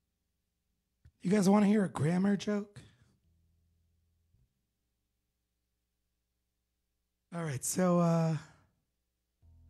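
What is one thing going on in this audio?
A man sings into a close microphone in short bursts.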